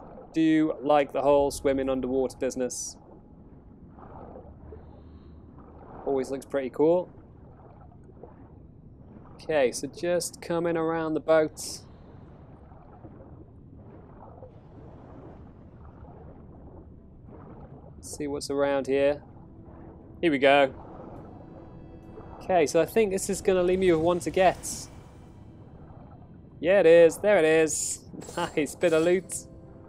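Muffled underwater ambience hums low and steady.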